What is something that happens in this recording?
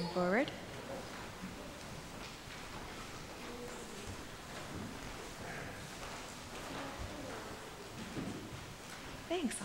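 A young woman reads aloud through a microphone in an echoing hall.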